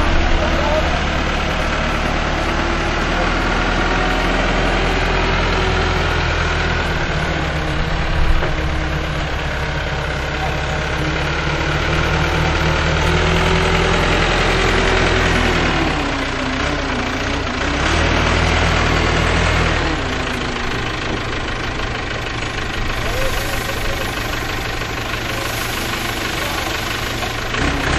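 A diesel backhoe engine rumbles and revs steadily nearby.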